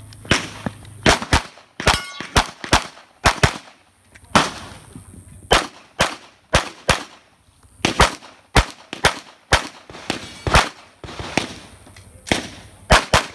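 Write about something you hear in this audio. A handgun fires rapid, sharp shots outdoors, each echoing briefly.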